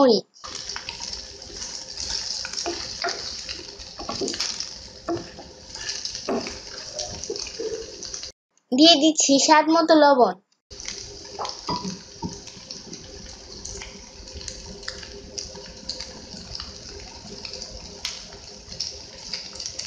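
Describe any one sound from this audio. A wooden spatula scrapes and knocks against a pan.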